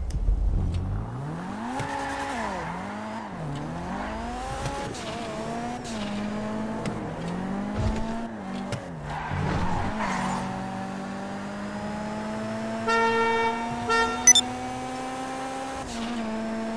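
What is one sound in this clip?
A car engine revs up and down as a car speeds along.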